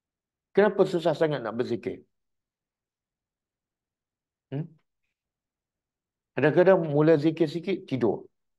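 A middle-aged man speaks calmly and with emphasis into a close microphone, pausing between phrases.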